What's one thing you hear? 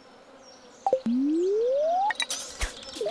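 A fishing rod's cast makes a rising tone that sweeps upward.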